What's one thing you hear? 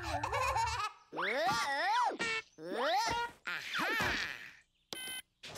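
A cartoon bird shouts in a shrill, squawking voice.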